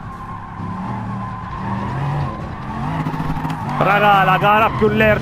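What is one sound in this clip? A hypercar engine revs hard as the car accelerates.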